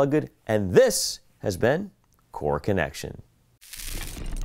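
A man speaks calmly into a clip-on microphone, close by.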